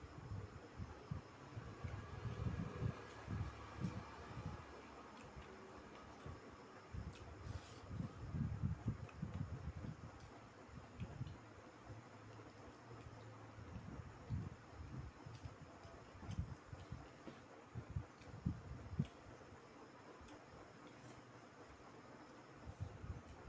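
Fingers and spoons clink against plates.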